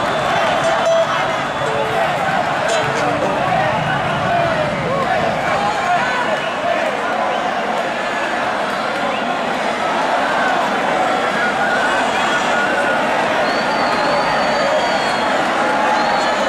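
A violin plays through loudspeakers.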